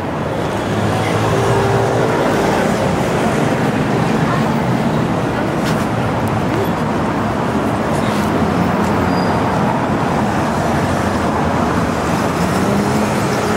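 Cars drive past on a road.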